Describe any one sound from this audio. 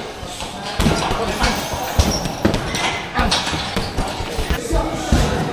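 Fists thump against a heavy punching bag.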